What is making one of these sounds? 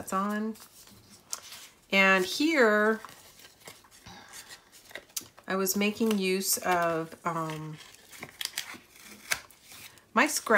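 Paper rustles and slides as hands handle sheets of card.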